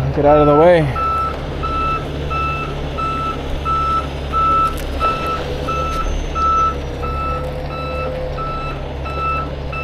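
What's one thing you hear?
A work truck's warning alarm beeps steadily and repeatedly.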